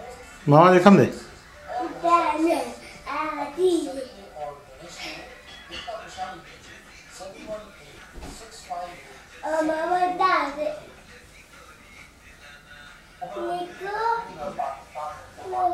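A young boy shouts and sings loudly close by.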